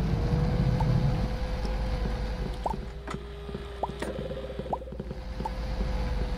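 Light cheerful blips pop up now and then.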